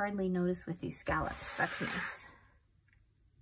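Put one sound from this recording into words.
A spiral notebook slides across a table.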